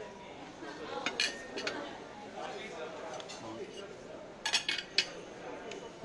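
Metal cutlery clinks and scrapes on a ceramic plate.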